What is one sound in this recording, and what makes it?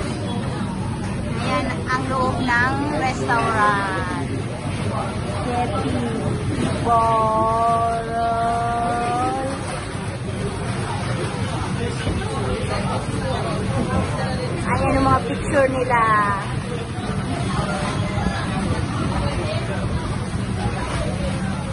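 Many people chatter in the background of a busy, roomy space.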